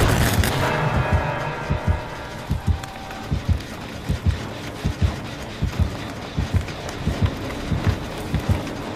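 Footsteps run over leaves and grass.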